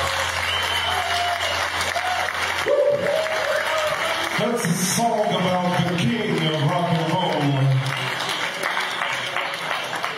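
A rock band plays loudly in a large echoing hall.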